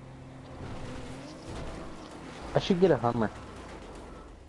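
A car crashes into bushes with a crunch.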